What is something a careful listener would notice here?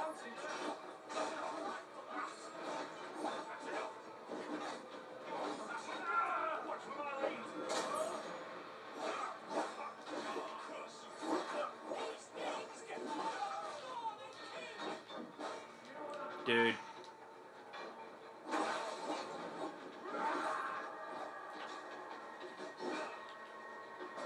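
Fighting sound effects from a game play through television speakers.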